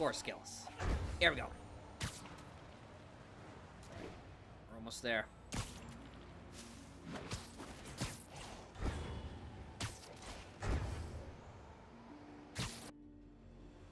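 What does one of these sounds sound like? Wind rushes and whooshes past during fast swinging.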